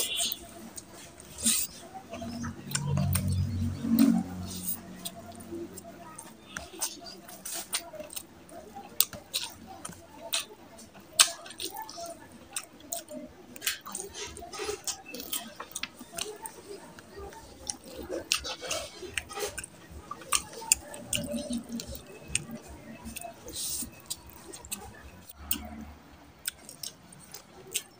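A man chews food loudly with wet, smacking sounds close to a microphone.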